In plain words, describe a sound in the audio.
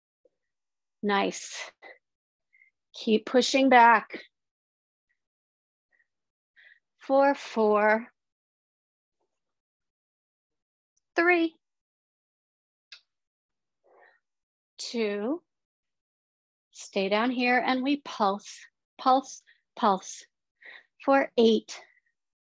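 A woman speaks with animation through a microphone, giving instructions in short bursts.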